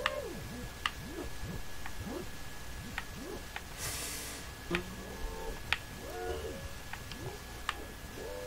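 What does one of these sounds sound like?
Springy boing sounds rise and fall over and over as barrels bounce along.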